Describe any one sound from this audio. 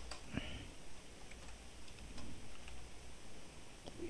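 Fingers tap on a computer keyboard.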